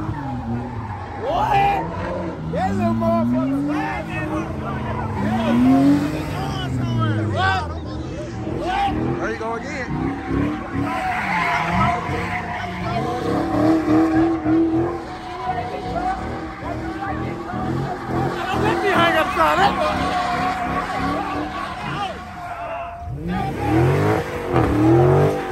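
A crowd of young men shouts and cheers outdoors.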